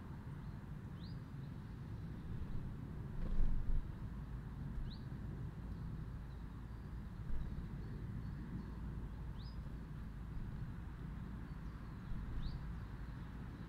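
A small bird chirps now and then, with short, sharp rising notes.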